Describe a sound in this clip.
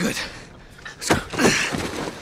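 A man grunts and strains with effort.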